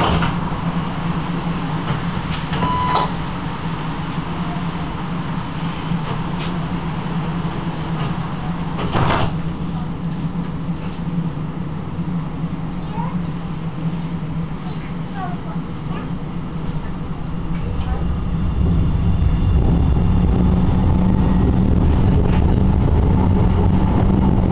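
A tram engine hums steadily, then rumbles louder as the tram pulls away.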